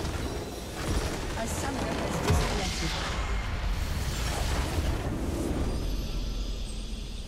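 A large crystal structure shatters and explodes with a loud rumbling blast.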